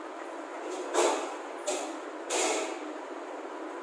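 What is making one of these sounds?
Chalk scrapes and taps on a blackboard in short strokes.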